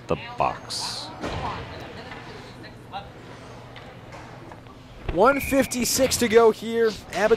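Ice skates scrape and glide across an ice rink.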